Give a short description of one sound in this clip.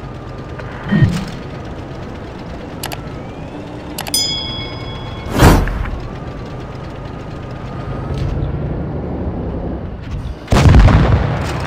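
Tank cannons fire with loud booms.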